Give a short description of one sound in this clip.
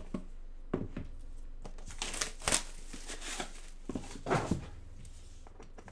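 Plastic wrap crinkles.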